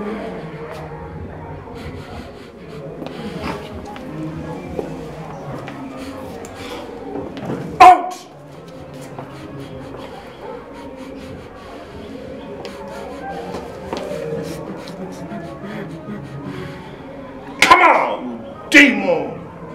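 A woman moans and groans softly nearby.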